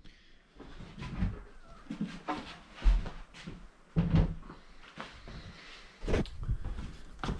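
A wooden box bumps and knocks as it is moved.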